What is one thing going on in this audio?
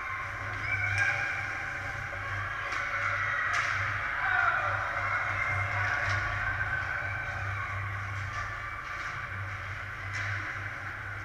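Hockey sticks clack against a puck now and then.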